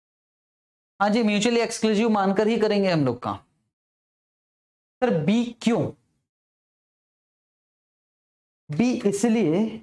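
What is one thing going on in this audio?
A man speaks with animation into a close microphone, pausing between phrases.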